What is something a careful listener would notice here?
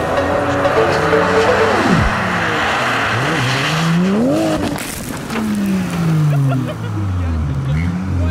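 Snow sprays against a car's body with a hissing rush.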